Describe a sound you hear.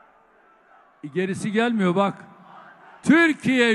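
A man speaks forcefully into a microphone over loudspeakers, his voice echoing in a large hall.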